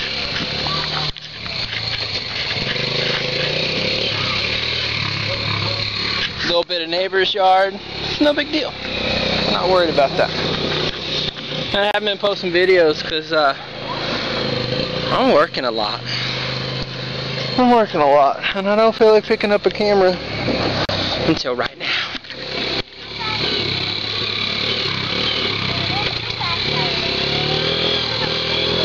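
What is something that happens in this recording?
A small engine hums steadily as a child's quad bike drives over grass.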